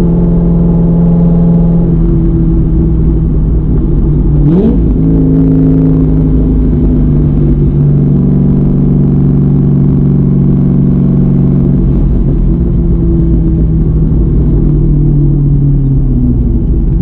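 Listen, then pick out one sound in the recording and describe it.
A car engine drones loudly from inside the car.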